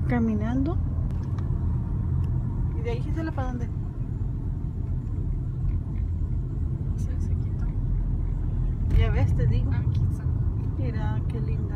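A car rumbles steadily as it drives along a road.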